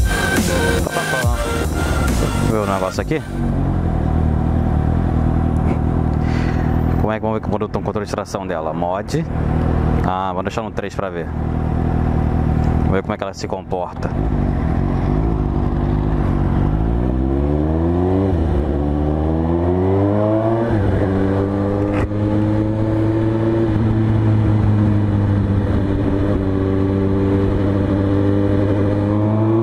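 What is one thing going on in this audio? A motorcycle engine hums close by, rising in pitch as it speeds up and dropping at each gear change.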